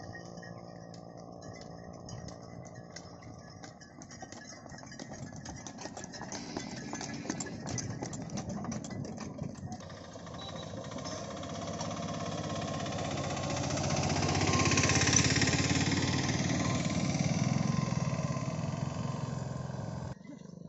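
Cart wheels rumble along a paved road.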